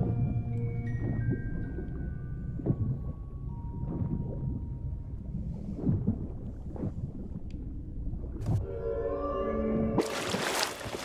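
Water bubbles and rumbles in a deep, muffled underwater hush.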